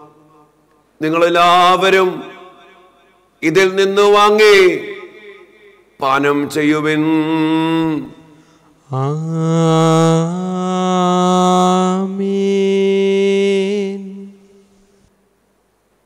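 A man chants in a sustained sung voice through a microphone.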